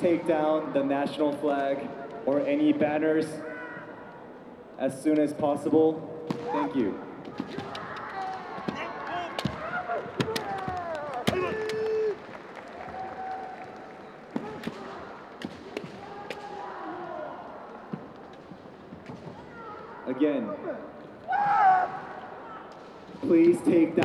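Men shout loud, drawn-out battle cries in a large echoing hall.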